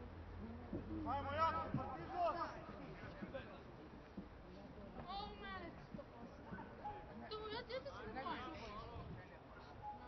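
Young men shout to each other outdoors, some way off.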